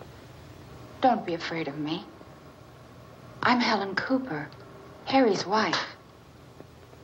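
A woman speaks with feeling, close by.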